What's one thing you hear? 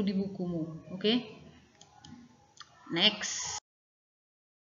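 A woman speaks calmly into a microphone, as if teaching.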